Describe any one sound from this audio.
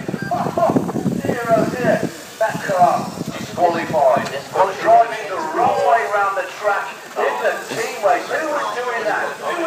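A crowd of men and boys chatter nearby outdoors.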